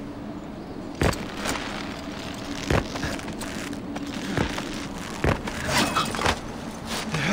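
Boots thud and scrape against rock during a rope climb.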